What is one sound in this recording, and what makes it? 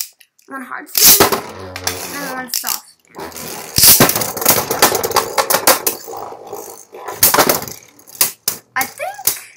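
Spinning tops collide with sharp clacks.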